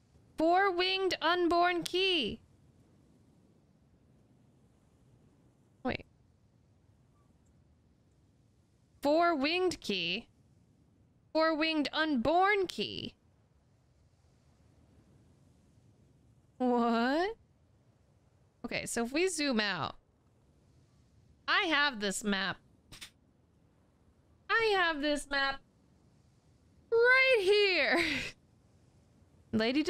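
A young woman talks with animation into a close microphone, in short bursts with pauses.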